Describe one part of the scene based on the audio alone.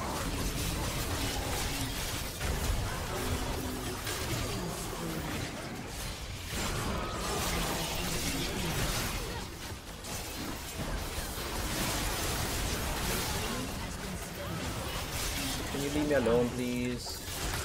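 Video game spell effects whoosh and crackle in quick bursts.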